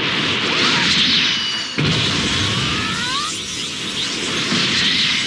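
Energy blasts whoosh and crackle in a video game fight.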